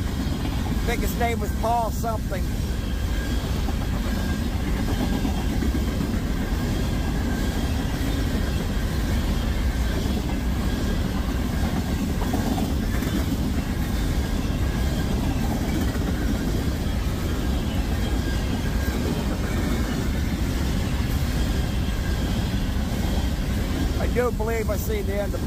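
Train wheels squeal briefly against the rails.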